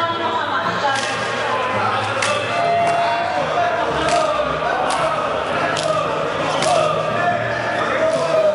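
Hands slap together in high fives.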